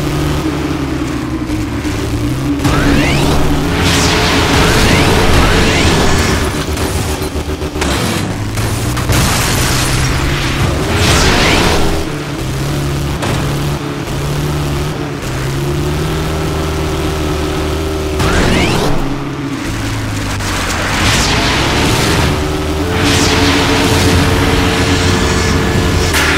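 A buggy engine roars and revs up and down.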